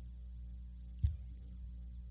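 A single dull knock sounds on a wooden desk.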